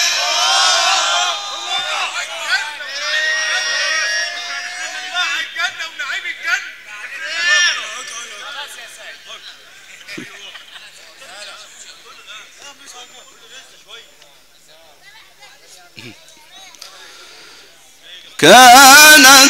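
A crowd of men murmurs and calls out.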